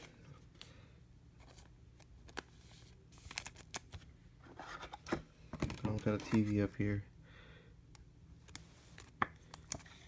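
A plastic card sleeve crinkles and rustles.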